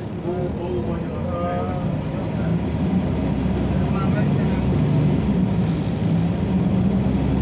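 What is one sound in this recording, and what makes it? A diesel city bus engine drones, heard from inside while driving.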